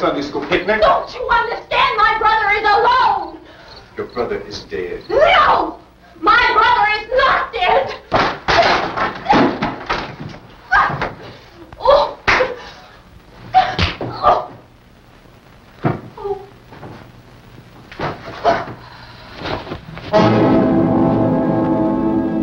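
Bodies scuffle and thump during a struggle.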